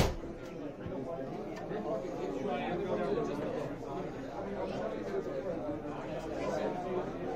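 A crowd of men and women chatter all around indoors.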